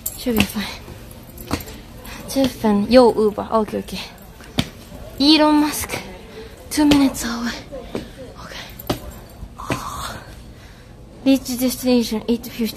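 A young woman talks close to the microphone with animation.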